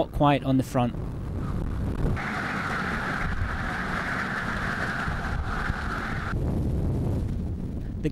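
Strong wind roars and buffets steadily outdoors.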